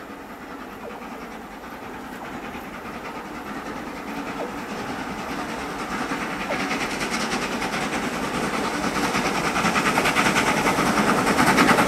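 A steam locomotive chuffs rhythmically, growing louder as it approaches.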